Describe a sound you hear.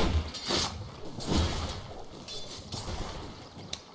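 Magic spells crackle and strike during a fight.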